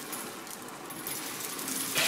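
A thin stream of material trickles from a height and patters onto a floor.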